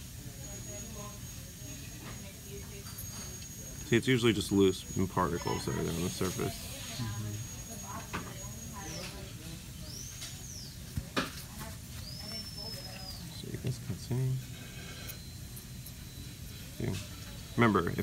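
A metal dental tool scrapes lightly against plastic teeth.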